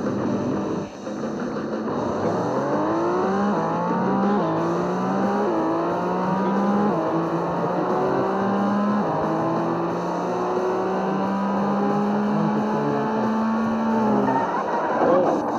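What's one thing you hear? A racing car engine revs higher and higher, shifting up through the gears.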